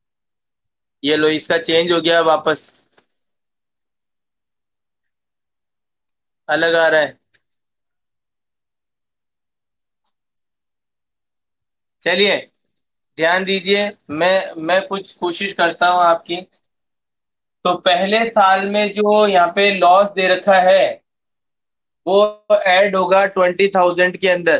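A man talks calmly into a close microphone, with pauses, heard through an online call.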